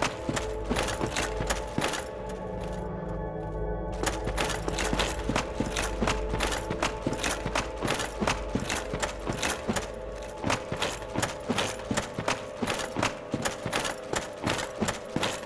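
Armoured footsteps crunch steadily on stone.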